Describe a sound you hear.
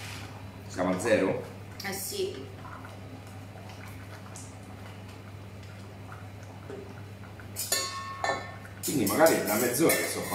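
A wooden spoon stirs a thick sauce in a metal pot.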